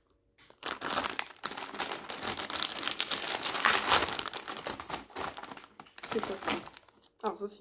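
A plastic candy bag crinkles and rustles.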